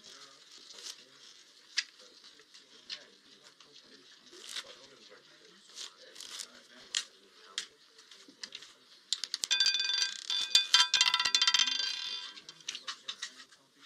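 A roulette ball rolls and rattles around a spinning wheel.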